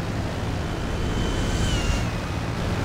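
A jet roars overhead and passes quickly.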